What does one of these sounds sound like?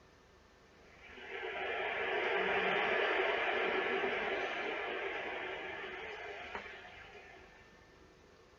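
A soft synthesized tone swells and slowly fades through a television speaker.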